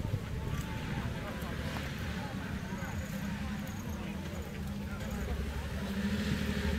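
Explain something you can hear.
An off-road engine rumbles and revs nearby.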